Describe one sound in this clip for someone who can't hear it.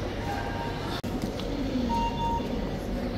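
A card reader beeps.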